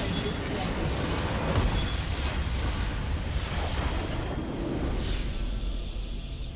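Game spell effects crash and explode loudly.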